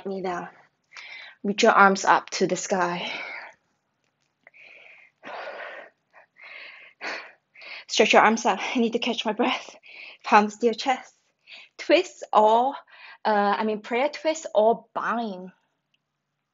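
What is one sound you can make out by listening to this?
A young woman speaks calmly and clearly, as if instructing, close by.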